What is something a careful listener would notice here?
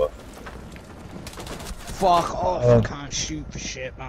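Gunshots crack in a rapid burst.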